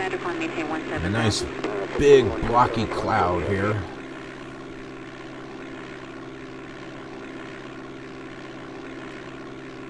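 A light aircraft engine drones steadily.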